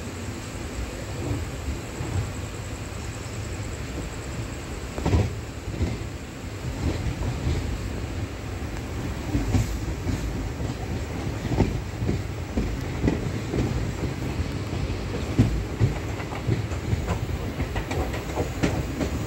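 Train wheels knock and clatter over rail joints.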